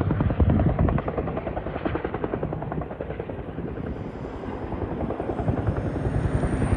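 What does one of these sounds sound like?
Wind blows steadily across an open field, rumbling and buffeting.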